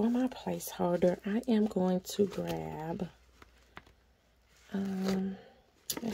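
Pages of a binder rustle as they are turned.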